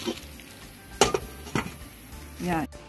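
A metal lid clinks against a metal steamer.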